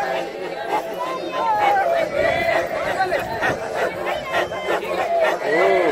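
A group of men chant rhythmically together.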